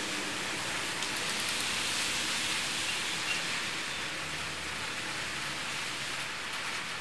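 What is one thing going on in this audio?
A small blade scrapes lightly on a hard plastic surface.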